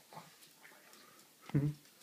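A small dog's paws patter on a wooden floor.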